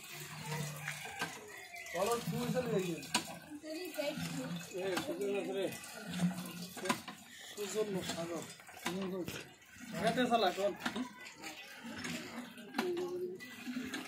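Water splashes from a hand pump into a metal pot.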